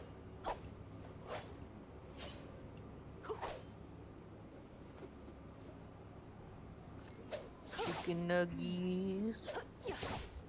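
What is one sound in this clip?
A sword swishes through the air in quick swings.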